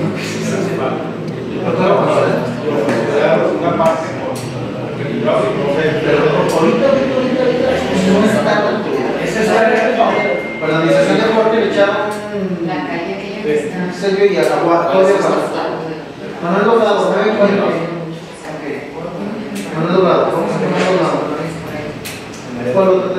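A man speaks steadily to a group, close by.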